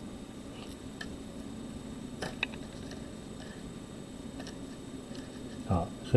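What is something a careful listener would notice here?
Cable connectors click and rustle softly as they are handled.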